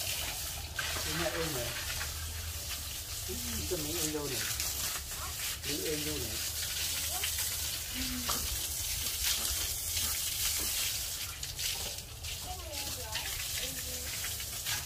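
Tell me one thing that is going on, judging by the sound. Pigs squeal in short bursts.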